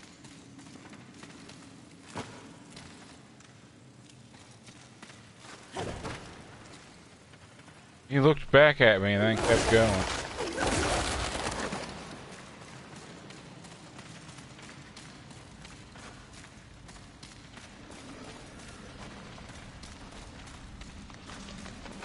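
A character's footsteps patter over rocky ground.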